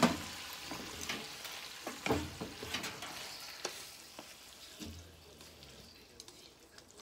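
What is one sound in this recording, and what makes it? Food sizzles in a hot pan.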